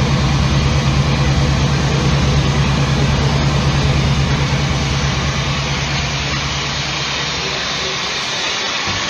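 Loud electronic music with a deep droning bass plays through speakers.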